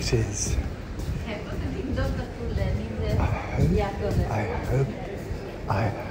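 Footsteps tap on a hard floor nearby.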